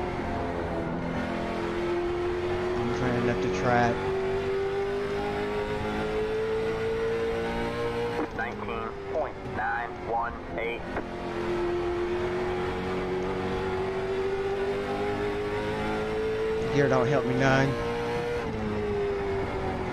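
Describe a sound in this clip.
A race car engine drones steadily, its pitch slowly rising through each gear and dropping at each shift.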